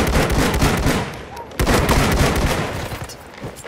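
Rapid gunfire rattles and echoes in a large hall.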